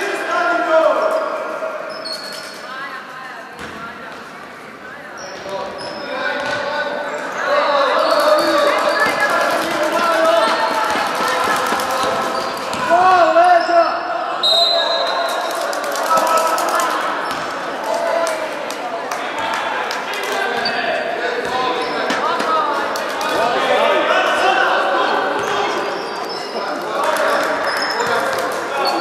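Young girls shout and cheer loudly in an echoing hall.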